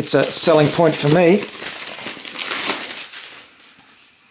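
Plastic wrapping crinkles as it is pulled away.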